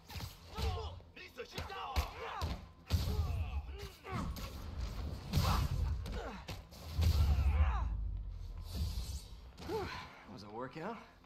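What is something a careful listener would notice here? Blows land in a fast fistfight.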